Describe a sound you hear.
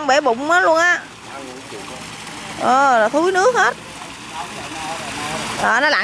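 Water laps and ripples gently.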